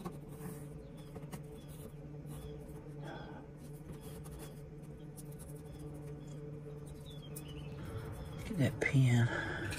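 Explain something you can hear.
A pencil scratches lightly on wood.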